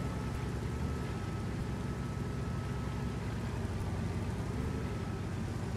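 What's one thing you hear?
A heavy tank engine rumbles steadily as the tank drives along.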